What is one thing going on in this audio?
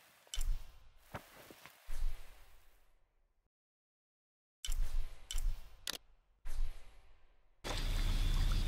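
Short menu clicks and blips sound.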